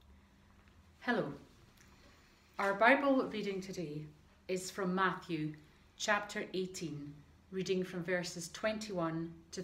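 A middle-aged woman speaks calmly to the listener, close to the microphone.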